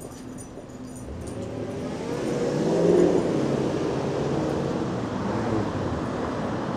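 Traffic rumbles past on a nearby street and grows louder.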